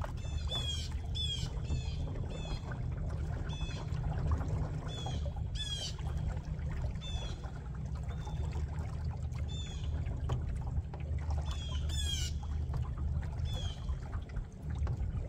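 Wind rumbles steadily outdoors over open water.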